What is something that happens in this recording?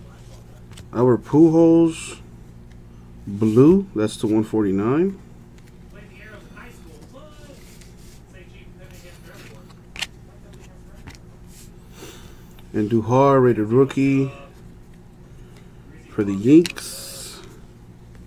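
Trading cards slide and rustle softly against each other.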